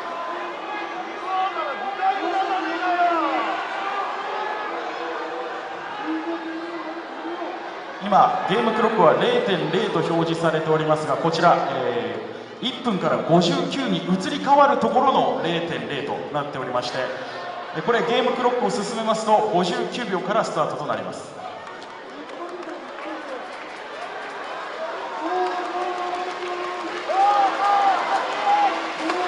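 A large crowd sings and chants loudly in a big echoing arena.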